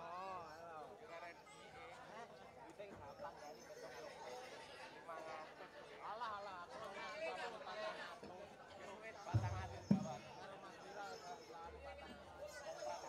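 A woman sings through loudspeakers in a large open tent.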